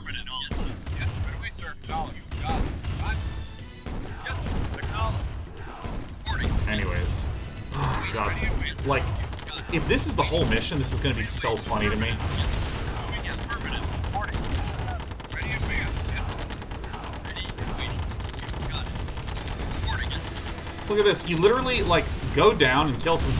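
A man talks with animation into a close microphone.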